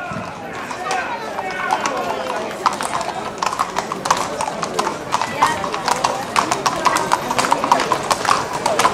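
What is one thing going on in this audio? Horse hooves clop on stone paving.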